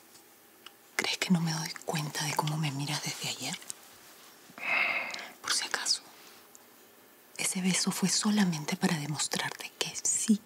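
A woman speaks tensely and firmly, close by.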